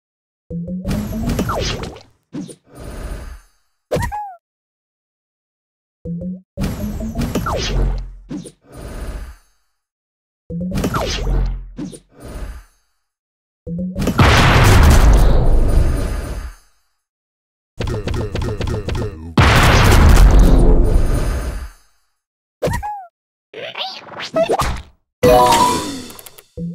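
Game sound effects chime and whoosh as pieces match and burst.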